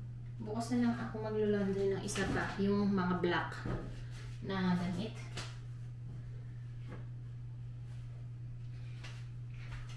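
Clothes rustle as a woman handles laundry.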